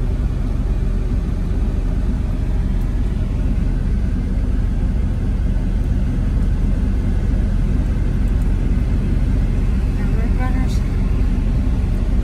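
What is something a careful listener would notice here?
Wind buffets loudly past an open car window.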